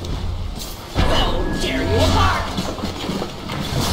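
A magic spell bursts with a loud whoosh and shimmering chimes.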